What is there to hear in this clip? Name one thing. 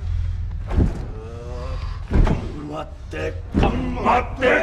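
A man speaks in a low, menacing voice close by.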